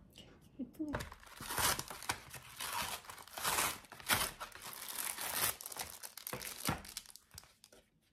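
A paper envelope rustles and tears as it is opened.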